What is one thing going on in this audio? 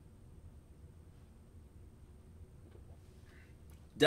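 A glass is set down on a wooden table.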